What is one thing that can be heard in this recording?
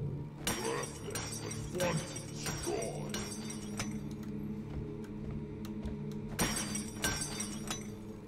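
A pickaxe strikes crystal with sharp, heavy cracks.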